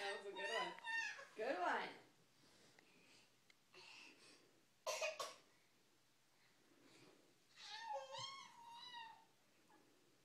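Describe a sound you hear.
A toddler squeals and babbles playfully nearby.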